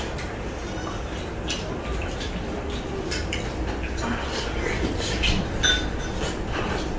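Fingers squish and rustle through food on a plate.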